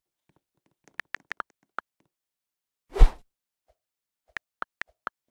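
Keyboard keys click softly.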